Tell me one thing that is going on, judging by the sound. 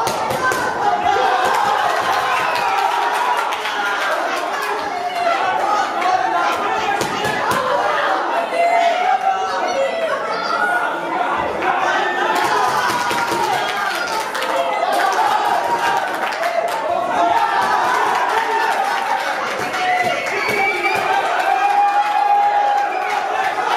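A crowd of spectators shouts and cheers loudly in an echoing hall.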